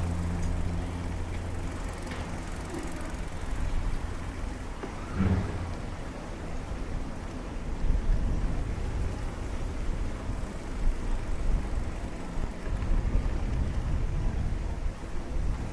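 Wind blows in gusts outdoors, rumbling and buffeting.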